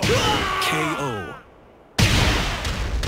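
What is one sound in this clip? A fiery blow explodes with a loud crash.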